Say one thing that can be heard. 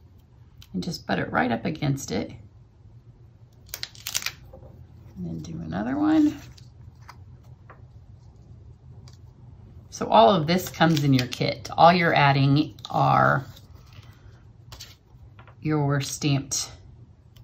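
Paper rustles and crinkles softly under hands.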